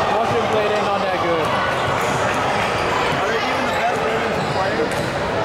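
Voices of young women call out, echoing in a large hall.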